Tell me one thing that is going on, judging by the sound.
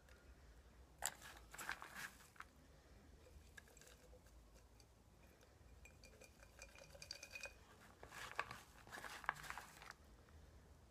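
Loose bark and soil rustle and rattle inside a glass jar.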